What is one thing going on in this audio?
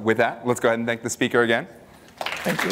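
A man speaks through a microphone in a large hall.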